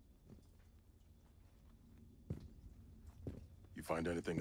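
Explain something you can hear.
Boots step on a hard floor.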